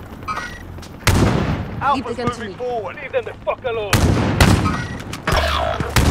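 A heavy machine gun fires loud bursts.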